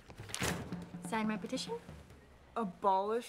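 A young woman speaks up close in a lively voice.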